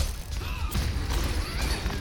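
A pistol fires in sharp, repeated shots.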